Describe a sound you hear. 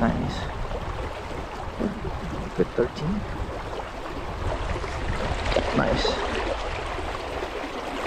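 Water splashes around a fish held near the surface.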